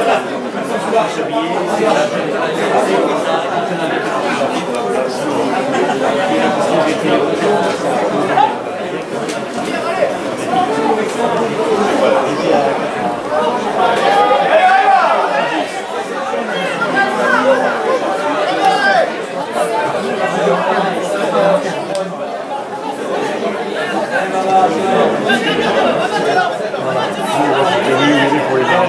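Men shout to each other across an outdoor field.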